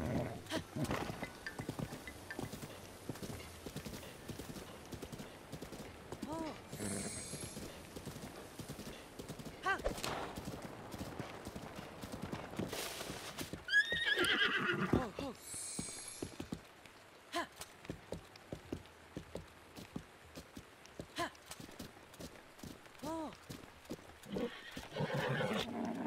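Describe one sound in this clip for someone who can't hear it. Horse hooves pound steadily on soft ground.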